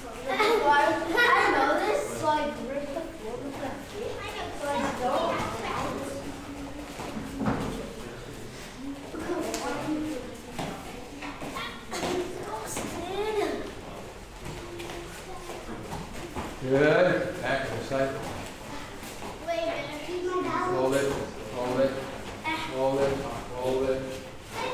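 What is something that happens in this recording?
A man calls out instructions loudly in an echoing hall.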